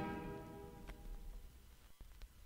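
A brass band plays a sustained chord that fades out.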